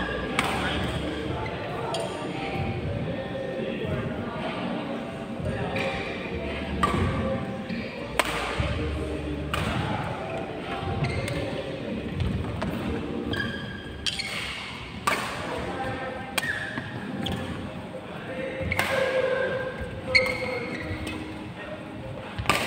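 Rackets strike a shuttlecock with sharp pops in a large echoing hall.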